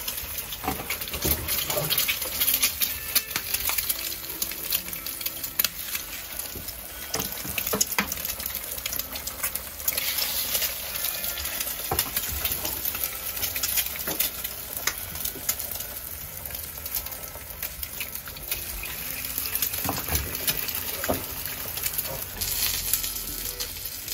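Eggs sizzle steadily in hot pans.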